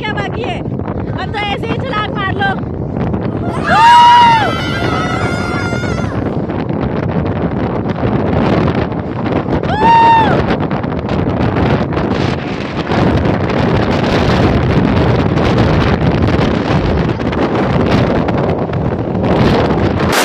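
Wind blows hard across the microphone.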